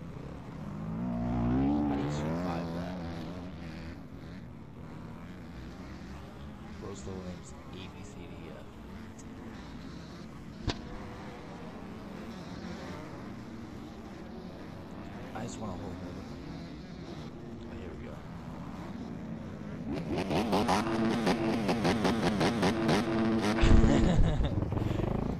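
Motorcycle engines rev loudly close by.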